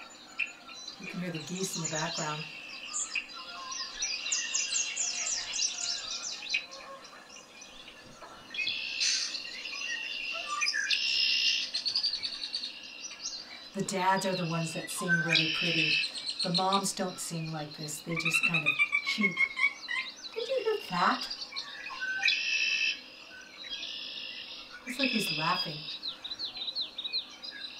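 An elderly woman speaks with animation close by.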